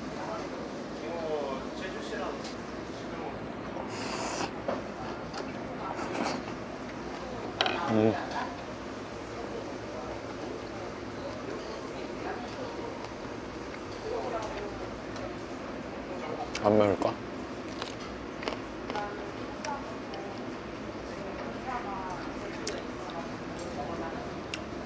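Chopsticks click against dishes.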